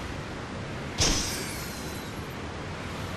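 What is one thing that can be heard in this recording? A magical burst goes off with a bright crackling boom.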